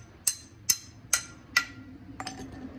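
A hammer strikes metal with sharp, ringing clangs.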